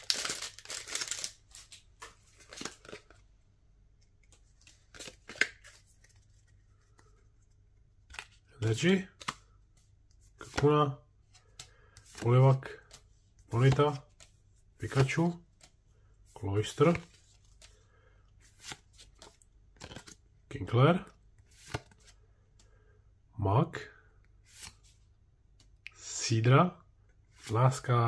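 Playing cards rustle and slide against each other in hands.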